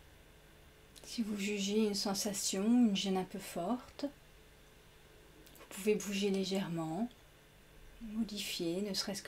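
A young woman speaks softly and calmly through a microphone.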